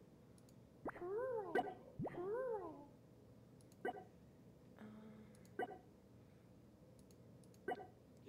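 A computer game plays short chirping and chiming sound effects.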